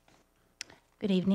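A woman starts speaking into a microphone.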